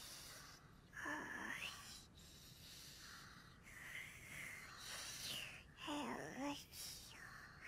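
A young boy snores softly.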